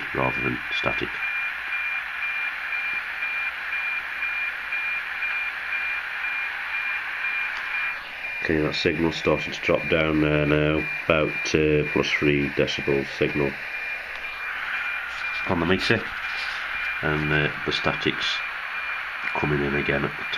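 A handheld radio hisses with a steady, ticking satellite signal.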